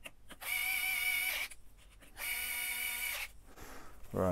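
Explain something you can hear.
A cordless drill whirs in two short bursts.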